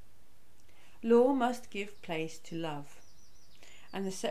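A middle-aged woman reads aloud calmly, close to the microphone.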